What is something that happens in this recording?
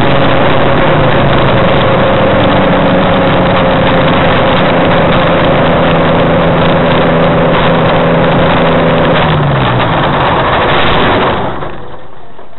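An aircraft engine roars loudly close by, then drops in pitch and cuts off.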